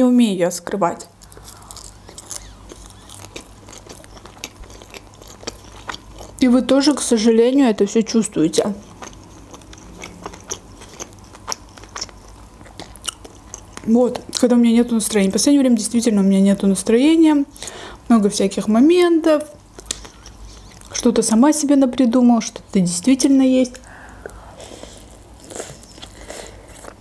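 A young woman chews food with wet, smacking sounds.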